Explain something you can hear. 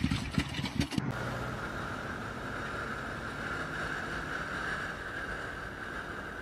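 A motorcycle engine hums at speed.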